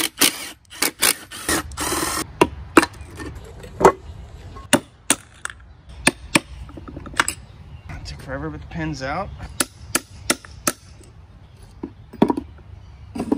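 Metal parts clink and clank against each other.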